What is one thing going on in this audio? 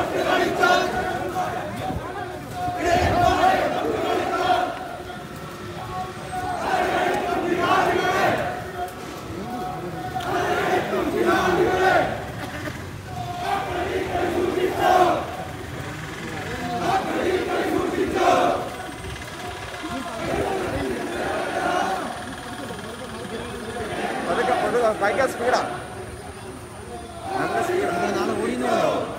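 A crowd of men chants slogans in rhythmic bursts, loud and close, outdoors.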